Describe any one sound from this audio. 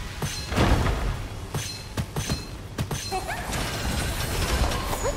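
A weapon fires repeated electric zapping shots.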